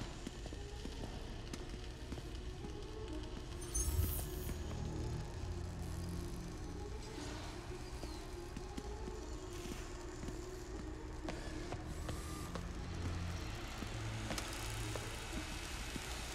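Soft footsteps shuffle on a hard floor.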